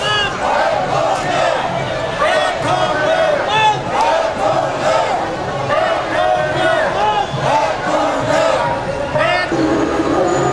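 A crowd of men and women chants and sings together outdoors.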